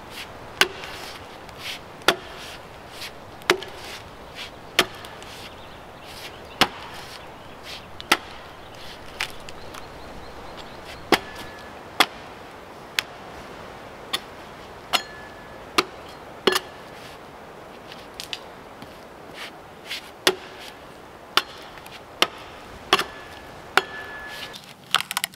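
An axe chops into a log with sharp, regular thuds.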